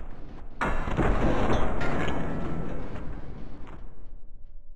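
Heavy blows land with dull, crunching thuds.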